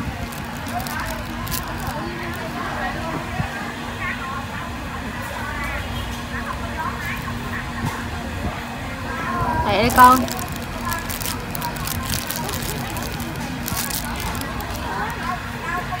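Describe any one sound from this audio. A plastic bag rustles and crinkles close by.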